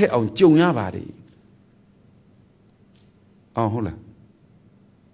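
A man speaks calmly and close by, in short phrases.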